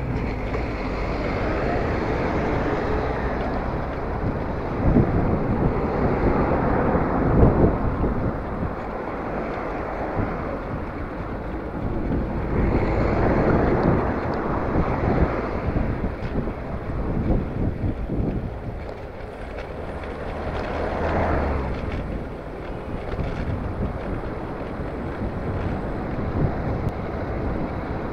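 Wind rushes and buffets steadily.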